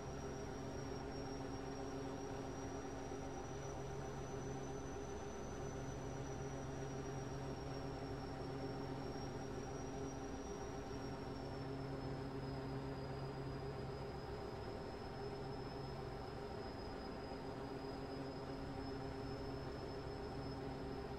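A truck engine hums steadily while driving.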